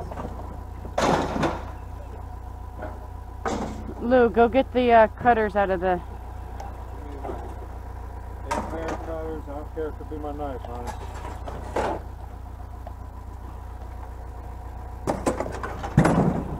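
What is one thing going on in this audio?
Metal clanks and rattles as a pole is handled.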